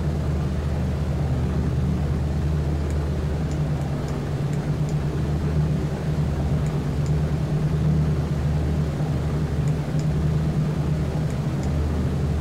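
Propeller engines of heavy bombers drone steadily.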